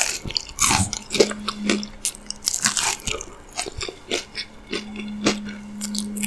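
A woman bites and chews soft pastry close to a microphone, with wet mouth sounds.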